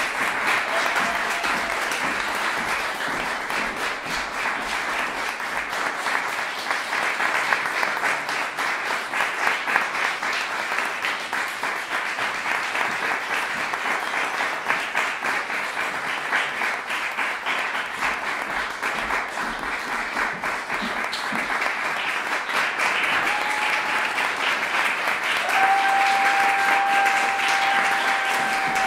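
An audience applauds with steady clapping in a room.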